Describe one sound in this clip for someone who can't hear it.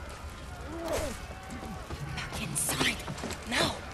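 Fire roars and crackles with explosions.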